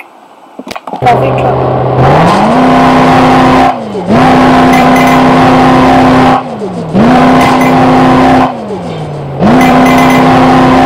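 A video game truck engine revs up and drops back again and again.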